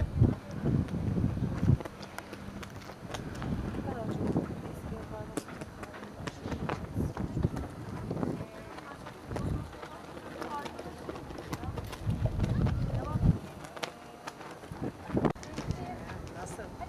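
Wind gusts and buffets the microphone outdoors.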